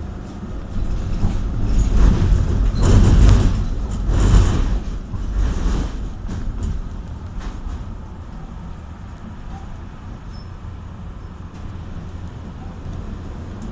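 An engine rumbles low and steady from inside a moving vehicle.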